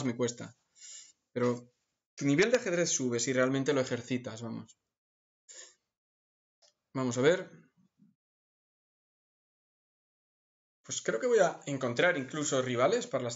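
A middle-aged man talks with animation close to a microphone, pausing now and then.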